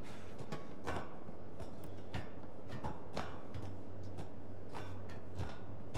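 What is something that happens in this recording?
Hands and feet clank on a metal ladder.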